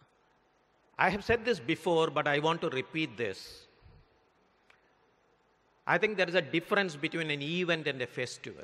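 An elderly man speaks steadily into a microphone in an echoing hall.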